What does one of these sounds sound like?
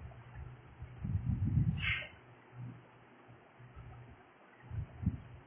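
A middle-aged woman speaks calmly nearby.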